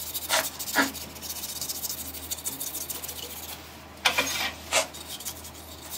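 A lathe spins with a low, steady hum.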